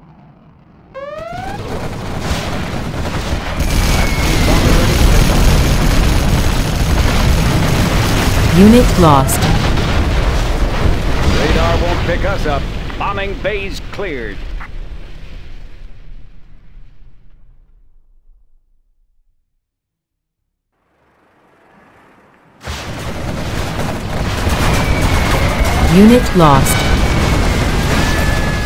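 Loud explosions boom and rumble in heavy bursts.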